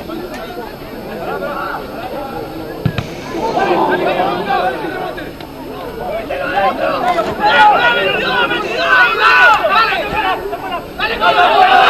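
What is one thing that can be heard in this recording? Young men shout and call out to each other outdoors, growing louder and more excited.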